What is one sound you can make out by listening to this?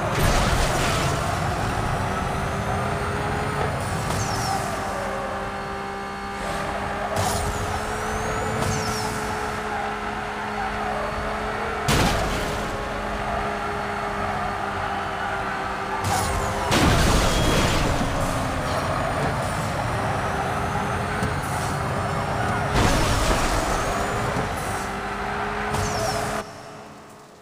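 A race car engine roars at high speed.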